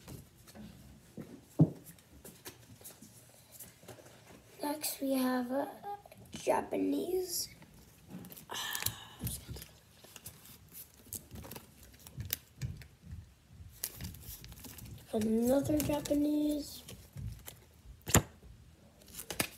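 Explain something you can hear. Cards rustle and tap as a girl handles them.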